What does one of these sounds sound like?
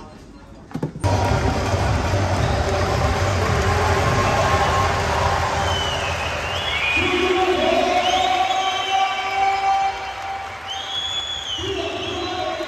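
A large crowd murmurs and chatters in a big echoing arena.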